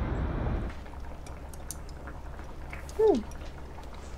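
Chopsticks tap lightly against a bowl.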